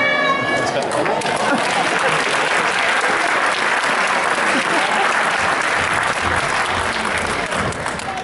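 Hands clap in steady applause.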